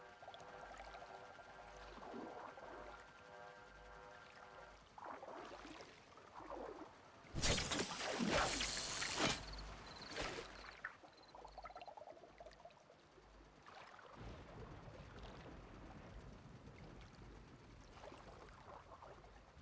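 Water splashes and sloshes as a figure wades through it.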